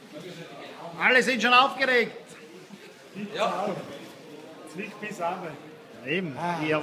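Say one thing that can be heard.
Young men laugh together.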